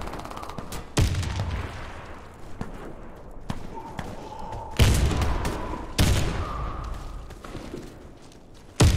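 Sniper rifle shots boom loudly and echo.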